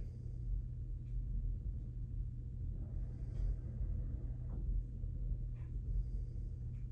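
Fabric rustles and rubs against the microphone up close.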